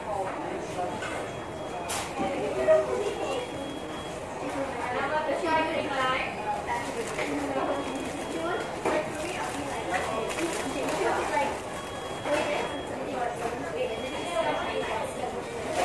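A paper wrapper crinkles and rustles in hands.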